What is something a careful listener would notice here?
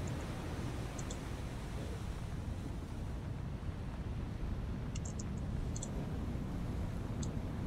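Waves wash and slosh on the open sea.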